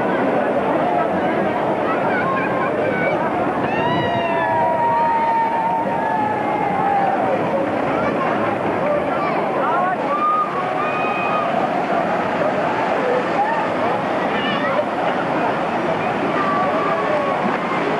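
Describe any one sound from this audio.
Rushing water splashes and churns loudly.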